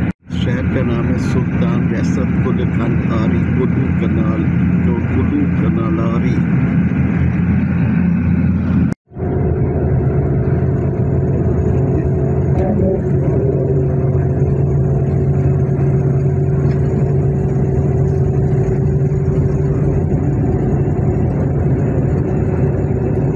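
A bus engine hums steadily from inside while driving.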